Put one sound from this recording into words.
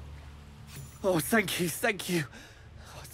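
A middle-aged man speaks with relief and gratitude.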